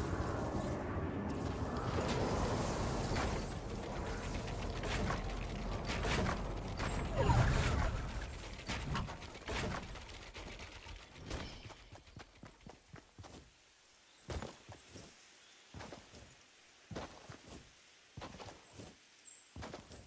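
Footsteps patter quickly on grass and dirt.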